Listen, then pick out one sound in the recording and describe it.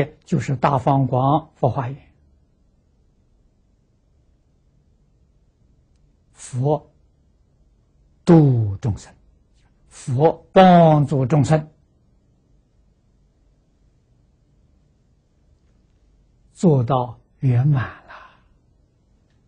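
An elderly man speaks calmly into a close microphone, pausing often.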